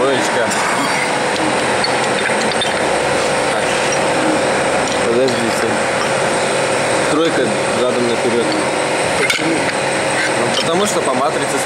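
A heavy machine runs with a loud, steady mechanical roar and hum.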